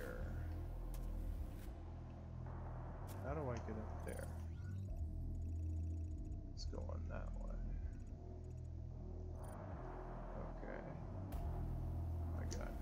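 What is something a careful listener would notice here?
A low, deep game soundtrack drones steadily.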